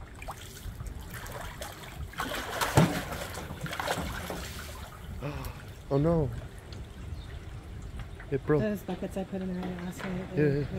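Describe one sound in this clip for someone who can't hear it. Water splashes and sloshes as a large animal paddles in a tub.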